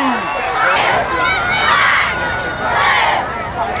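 Young women cheerleaders chant and yell together.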